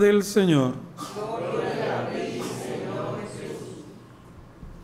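A group of people murmur a response together.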